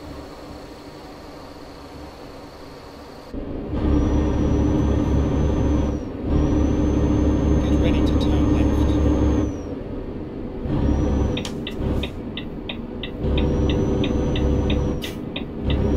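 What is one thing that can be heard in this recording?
A diesel semi-truck engine drones while cruising.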